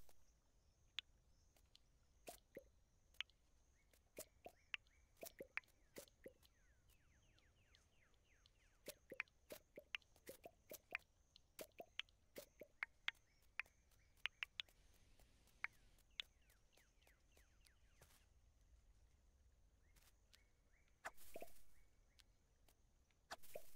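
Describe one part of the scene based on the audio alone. A scythe cuts through crops with short, sharp swishes, again and again.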